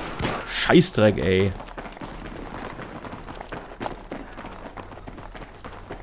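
A rifle fires short bursts.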